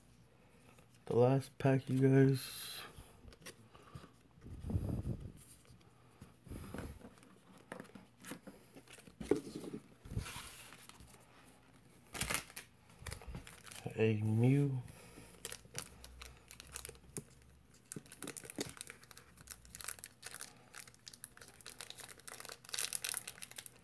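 Trading cards rustle and tap as someone handles them.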